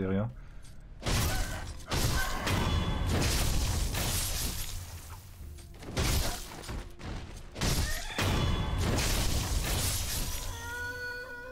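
Swords clash and slash in a fierce fight.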